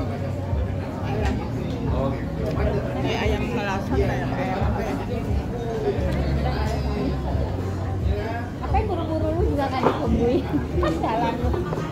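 An elderly woman talks with animation close by.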